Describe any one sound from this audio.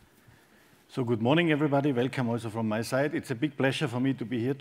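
A man speaks calmly into a microphone, heard through a loudspeaker in a large hall.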